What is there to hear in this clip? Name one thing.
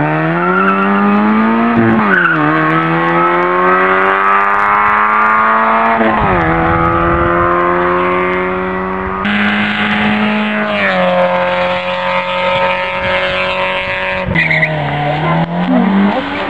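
A rally car engine revs hard, dropping and climbing in pitch as gears shift.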